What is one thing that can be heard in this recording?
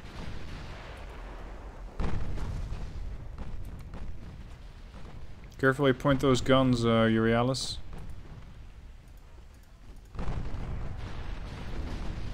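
Heavy naval guns boom with a deep rumble.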